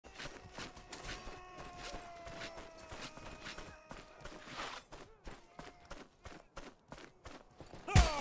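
Footsteps thud quickly over grass and dirt.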